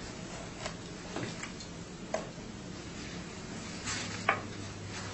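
Papers rustle and tap on a table nearby.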